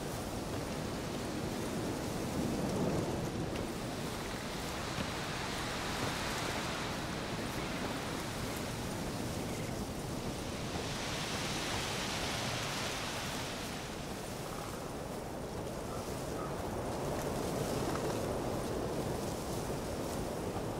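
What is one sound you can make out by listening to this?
Footsteps crunch through undergrowth and leaves.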